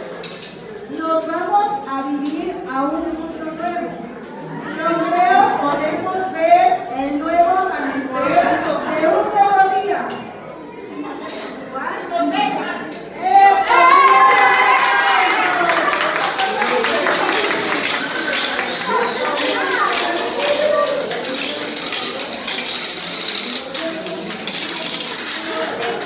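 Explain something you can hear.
A woman sings through a microphone and loudspeaker in an echoing hall.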